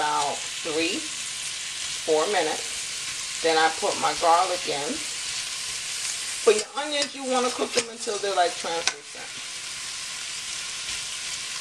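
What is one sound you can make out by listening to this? A metal spatula scrapes and clatters against a frying pan.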